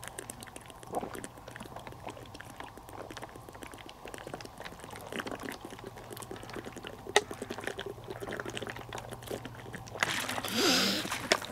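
A plastic bottle crinkles in a hand.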